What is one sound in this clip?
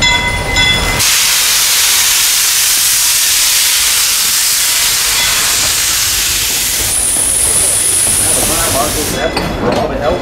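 Steam hisses loudly from a locomotive close by.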